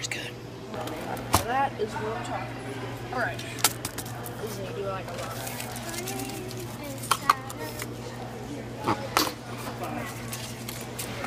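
A cardboard tray of popcorn rustles and knocks as it is handled.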